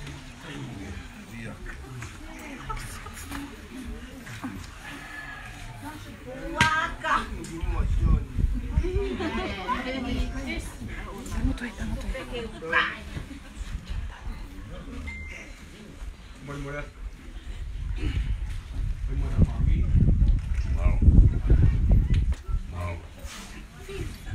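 Men and women talk in low voices nearby.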